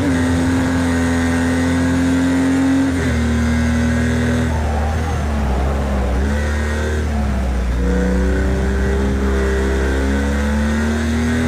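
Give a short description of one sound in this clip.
A racing car engine roars loudly, its pitch rising and dropping through gear changes.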